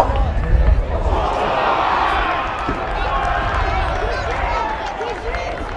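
A small crowd cheers and shouts outdoors.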